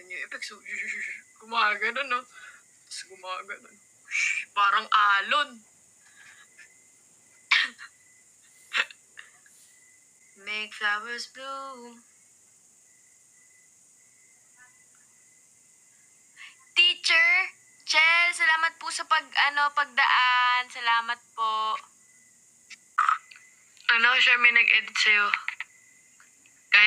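A young woman talks with animation close to a microphone, with pauses.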